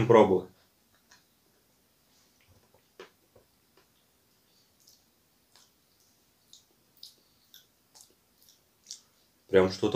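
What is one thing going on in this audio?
A young man chews food.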